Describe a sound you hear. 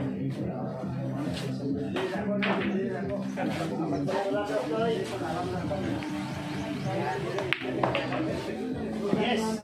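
Several young people chatter nearby in a lively crowd.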